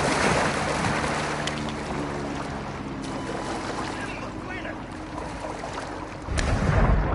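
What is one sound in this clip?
Water splashes and laps around a swimmer.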